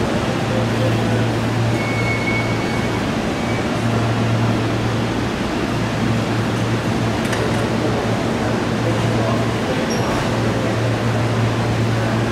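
A stopped train hums steadily.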